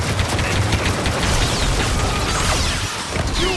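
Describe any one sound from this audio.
A lightsaber hums and swings.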